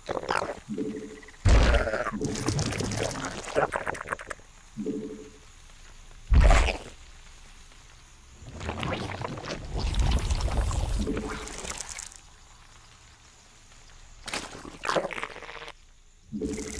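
Computer game creatures screech and gurgle in short bursts.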